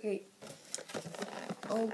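Plastic packaging crinkles as a hand handles it.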